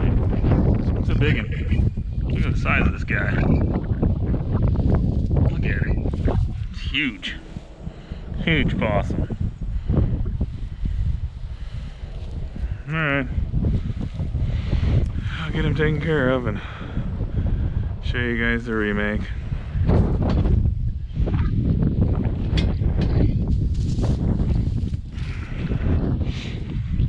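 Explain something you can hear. Dry grass rustles and crunches.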